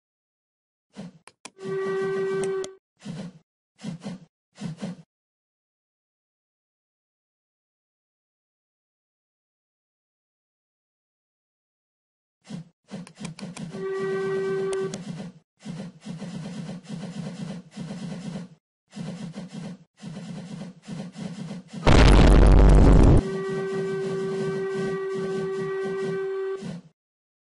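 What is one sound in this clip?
A steam locomotive chuffs in quick, uneven bursts.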